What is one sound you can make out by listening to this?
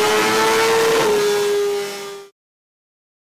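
A motorcycle engine holds a high, steady roar and then cuts out abruptly.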